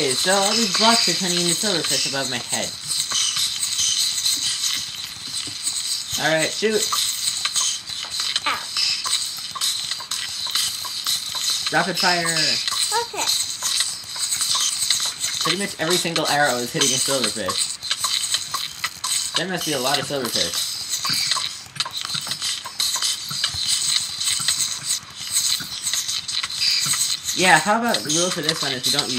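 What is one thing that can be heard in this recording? Many small creatures hiss and chitter in a swarm.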